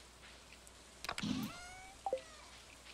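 A storage chest opens with a soft pop and chime in a video game.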